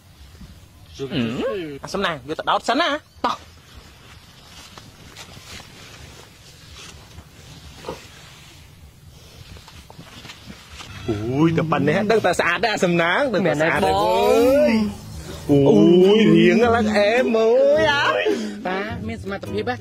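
A teenage boy talks, close by.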